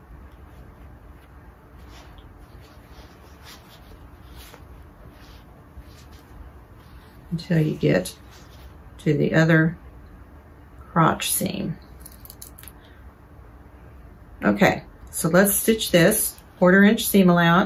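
Fabric rustles softly as hands handle it.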